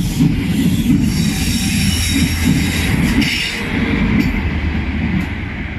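A train engine roars as it passes.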